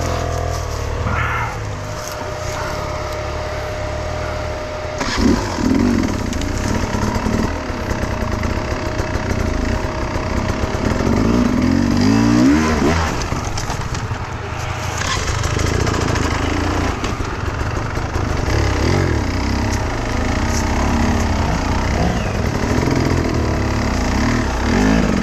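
Another dirt bike engine revs nearby.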